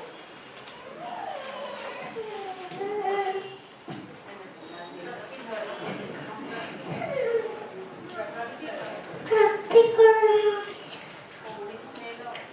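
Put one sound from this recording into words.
A small girl speaks into a microphone, heard through a loudspeaker.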